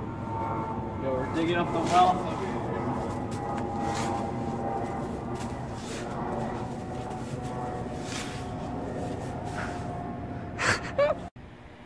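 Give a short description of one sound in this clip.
A metal shovel scrapes and digs into snow.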